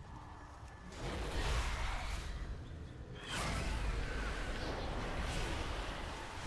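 Magic spell effects crackle and burst loudly.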